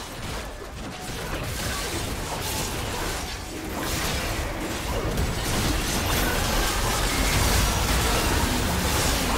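Spell effects whoosh and crackle in a fight.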